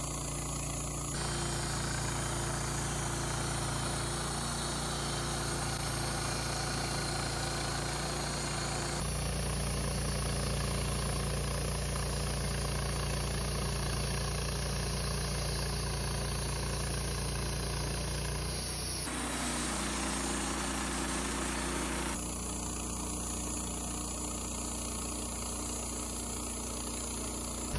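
A band saw blade cuts slowly through a log.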